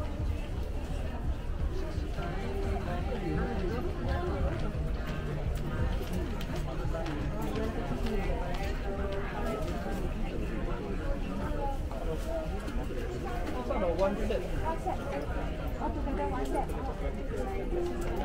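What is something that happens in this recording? Footsteps shuffle on a hard floor nearby.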